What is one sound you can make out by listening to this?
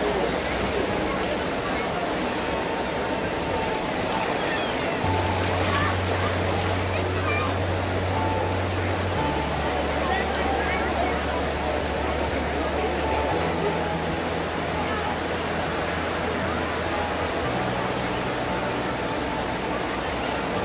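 Water rushes steadily over a low weir and burbles along a shallow stream.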